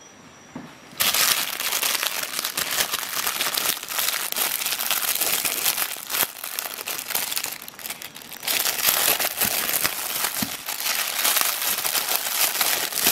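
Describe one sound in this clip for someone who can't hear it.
A plastic wrapper crinkles and rustles in hands.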